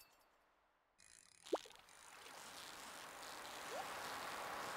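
A fishing reel whirs as a line is reeled in.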